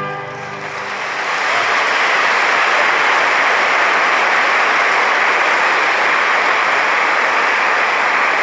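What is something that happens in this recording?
A man claps his hands in loud, steady applause that echoes in a large hall.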